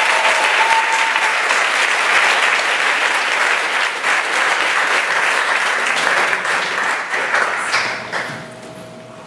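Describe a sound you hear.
An audience applauds and cheers loudly in a large hall.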